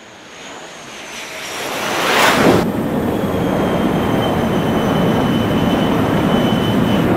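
A jet engine roars, growing louder as the plane passes low overhead.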